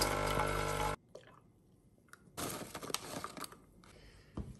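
Milk pours and splashes into a mug.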